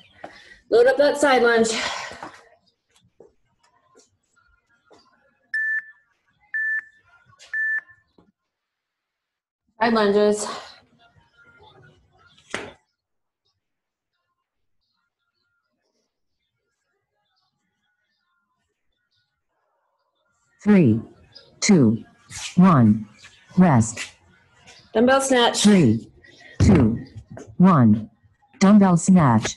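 A woman talks with energy over an online call, in short bursts.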